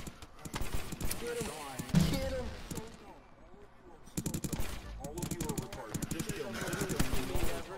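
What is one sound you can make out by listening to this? A toy gun fires rapid popping shots.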